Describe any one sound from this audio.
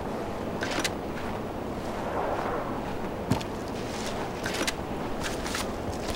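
Branches rustle as someone pushes through dry brush.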